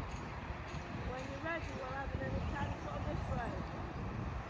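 A woman calls out from a distance outdoors.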